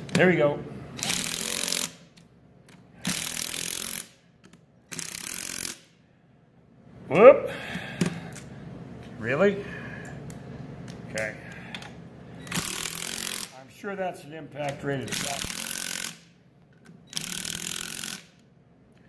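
A cordless impact driver whirs and hammers in short bursts, tightening bolts.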